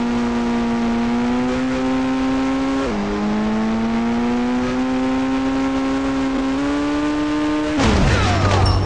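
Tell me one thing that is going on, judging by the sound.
A car engine hums steadily and shifts gears as the car drives.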